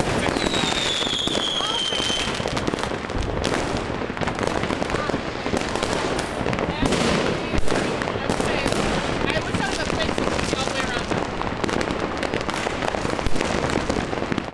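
Fireworks crackle and pop in dense bursts.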